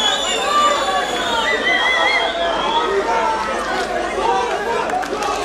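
A crowd of spectators shouts and cheers in a large hall.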